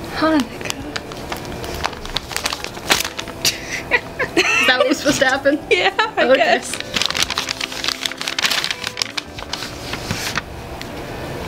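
Paper and plastic wrapping crinkle and rustle.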